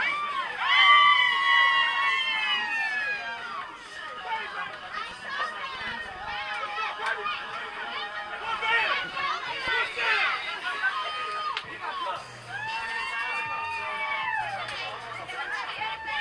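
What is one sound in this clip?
A crowd of young men and women chatters and laughs all around.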